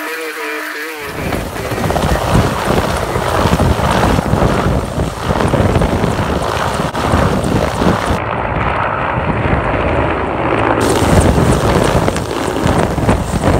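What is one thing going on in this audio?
A helicopter's engine roars close by.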